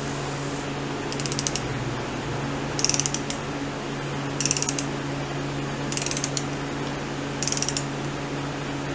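A ratchet wrench clicks rapidly in short bursts.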